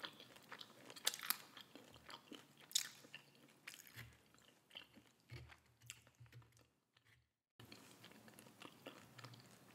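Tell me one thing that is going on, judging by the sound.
A woman chews and slurps noodles close to a microphone.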